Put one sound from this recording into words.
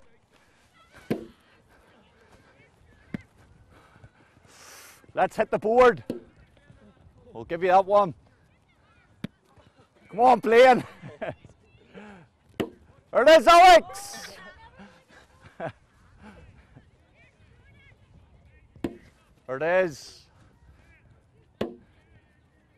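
A football thuds against hands and feet.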